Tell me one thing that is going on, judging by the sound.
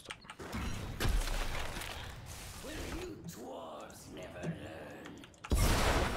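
Game battle effects clash and blast.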